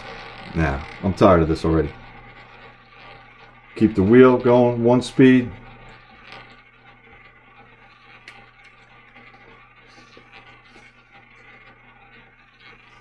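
A roulette wheel spins with a soft, steady whir.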